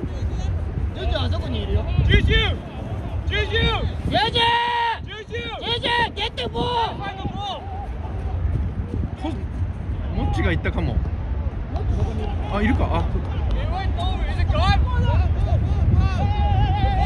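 Players shout and call out to each other from across the field.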